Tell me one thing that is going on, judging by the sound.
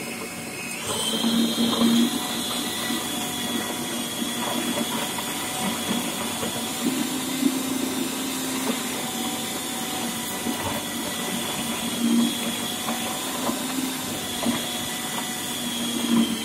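A food processor motor whirs loudly and steadily.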